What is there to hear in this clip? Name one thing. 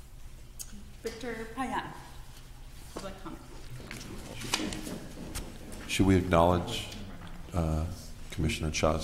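A woman speaks calmly into a microphone, heard over a loudspeaker in a large room.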